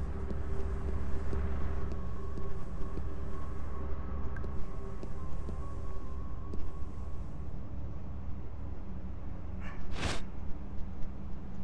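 Soft footsteps patter quickly on hard ground.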